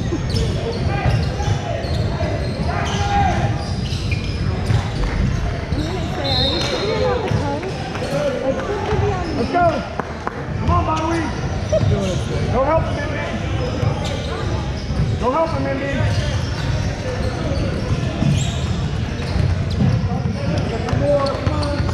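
Players and spectators call out and chatter in an echoing hall.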